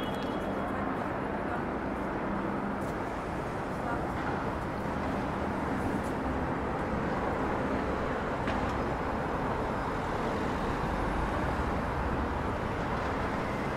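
People chatter and walk past nearby.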